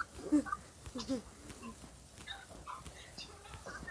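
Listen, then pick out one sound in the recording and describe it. A sparkler fizzes and crackles close by.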